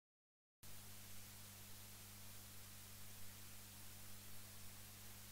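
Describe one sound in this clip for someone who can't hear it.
A record player's motor hums low and steady.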